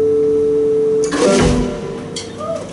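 A cymbal crashes as a band's song ends.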